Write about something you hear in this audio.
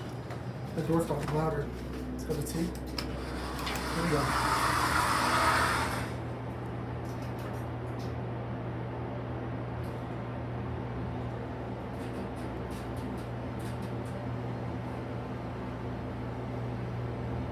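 An elevator car hums steadily as it moves.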